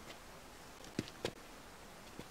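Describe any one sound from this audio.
Boots thud on a wooden log.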